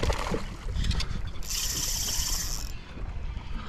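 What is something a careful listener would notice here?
A fish splashes at the water's surface.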